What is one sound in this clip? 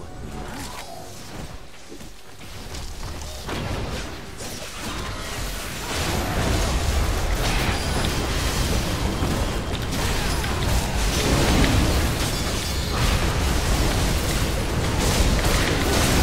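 Spell effects crackle and explode in a game battle, growing busier and louder.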